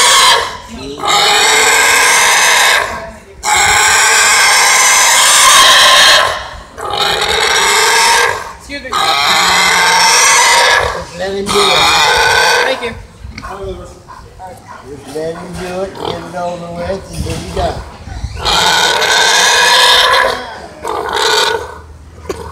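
A pig squeals loudly in long piercing bursts.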